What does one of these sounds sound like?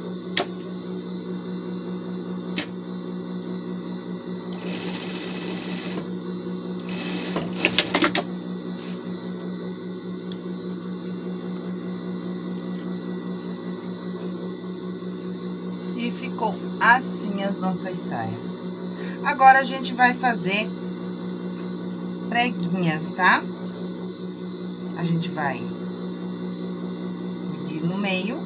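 A sewing machine motor hums steadily.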